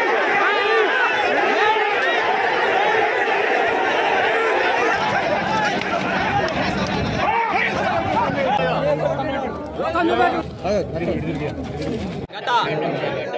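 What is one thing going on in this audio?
A crowd of men shouts and clamours outdoors.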